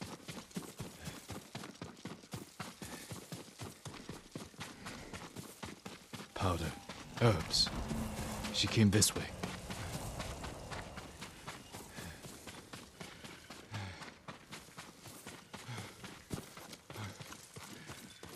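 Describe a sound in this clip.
Quick footsteps run through rustling grass.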